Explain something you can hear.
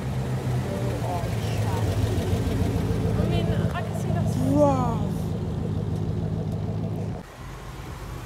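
A sports car engine rumbles deeply as the car pulls away.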